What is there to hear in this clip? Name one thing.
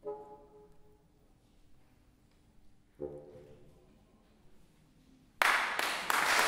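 A bassoon plays a few low sustained notes in an echoing hall.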